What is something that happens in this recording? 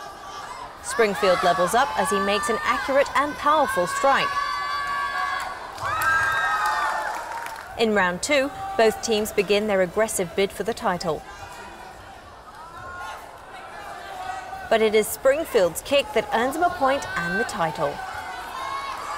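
A crowd of young spectators cheers and shouts loudly in an echoing hall.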